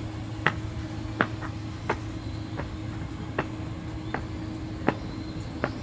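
Footsteps tap on stone steps at a steady walking pace.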